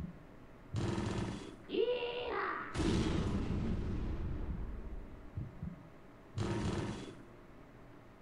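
Slot machine reels spin and jingle.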